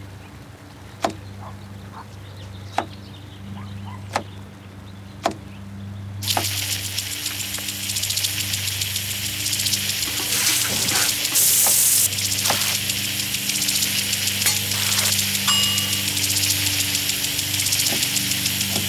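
A knife chops vegetables on a wooden board with sharp knocks.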